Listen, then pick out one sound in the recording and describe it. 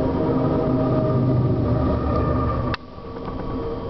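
A diesel locomotive roars past close by.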